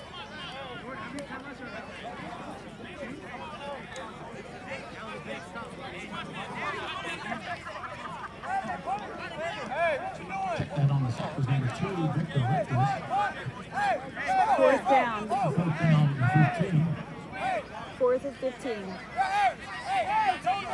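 A crowd talks and cheers at a distance outdoors, growing louder partway through.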